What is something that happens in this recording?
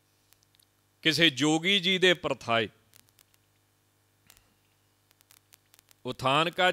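A man sings a drawn-out chant into a microphone.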